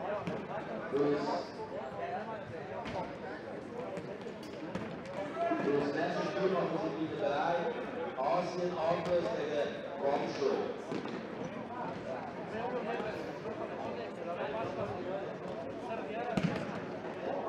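A futsal ball is kicked with a sharp thump in an echoing hall.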